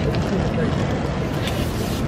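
A broom sweeps across pavement.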